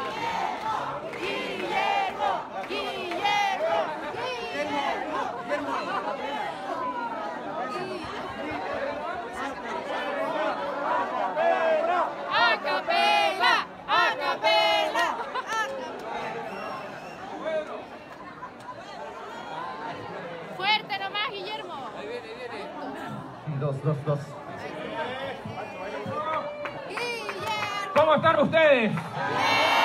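A man speaks loudly and with animation to a crowd in a large room.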